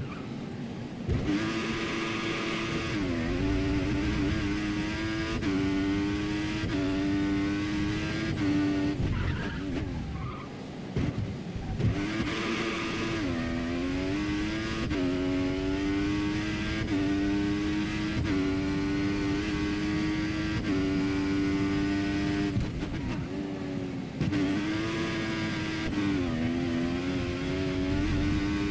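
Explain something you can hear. A racing car engine screams at high revs, rising through the gears and dropping as it brakes for corners.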